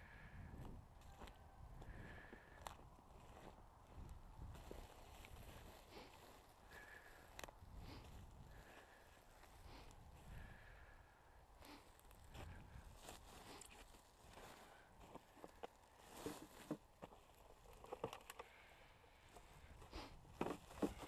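Footsteps crunch over dry brush and scattered debris.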